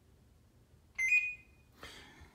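An intercom rings with a short, loud electronic tone.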